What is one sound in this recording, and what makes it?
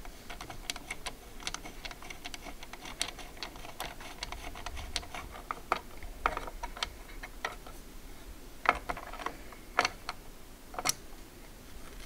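A screwdriver clicks and scrapes against metal parts.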